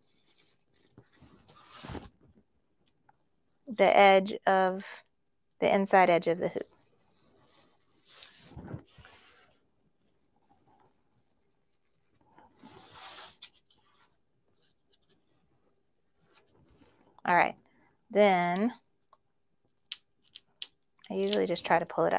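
Plastic film rustles and crinkles under hands.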